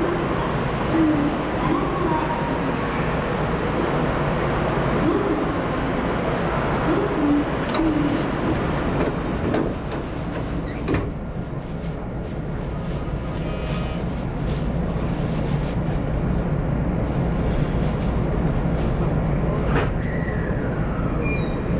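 A train's engine hums steadily at rest.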